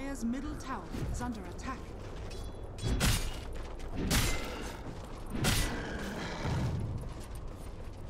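Weapons clash and spells hit with heavy thuds in a game fight.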